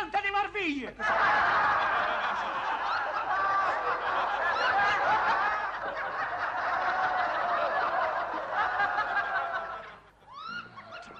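Several men and women sing together in a lively ensemble.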